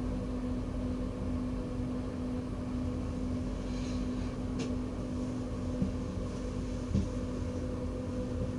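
A train's motor hums steadily while standing still.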